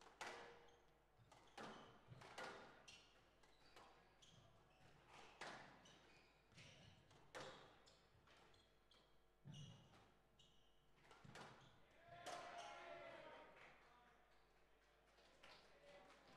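A squash ball smacks sharply off rackets and walls, echoing in a large hall.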